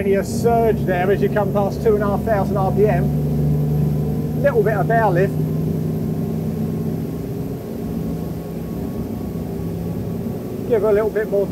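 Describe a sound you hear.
Water churns and rushes behind a speeding boat.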